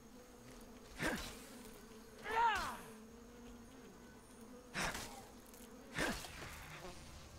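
Sharp magical blasts burst and crackle in quick bursts.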